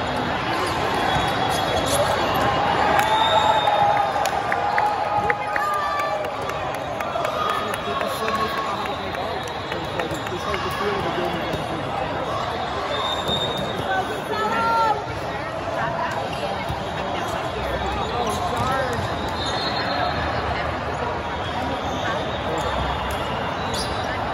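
A large echoing hall fills with the steady murmur of a crowd.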